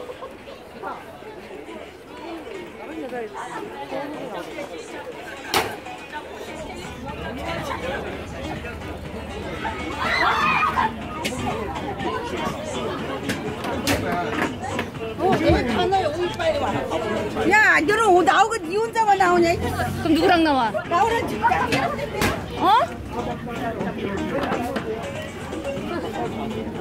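A crowd of adults chatters all around outdoors.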